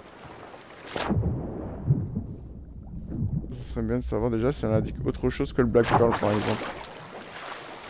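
Muffled water rumbles heard from underwater.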